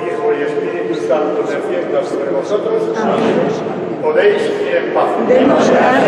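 An elderly man sings slowly into a microphone in a large echoing hall.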